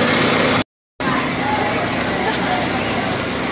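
A crowd of young people chatter outdoors.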